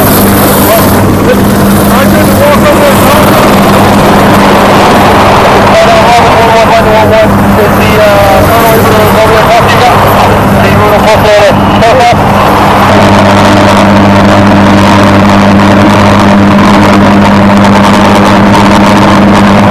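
A helicopter's rotor thumps and its engine whines loudly close by.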